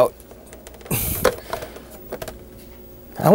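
A metal computer case scrapes and clicks as it is handled.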